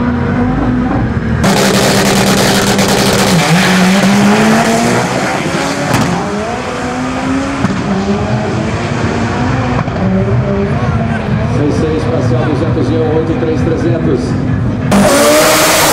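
A car engine roars loudly as the car accelerates hard.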